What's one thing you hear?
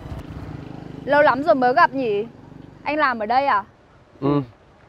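A young woman speaks up close.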